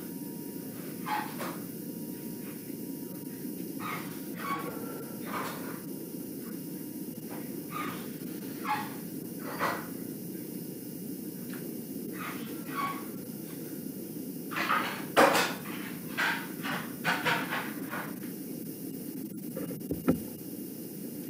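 A woman speaks slowly and calmly over an online call.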